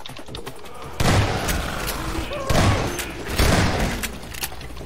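A shotgun fires loud blasts that boom and echo.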